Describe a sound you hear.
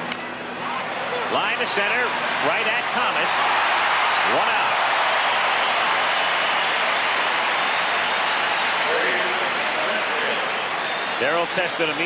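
A large crowd roars and cheers.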